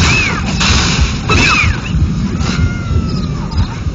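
Weapon blows and combat effects clash sharply.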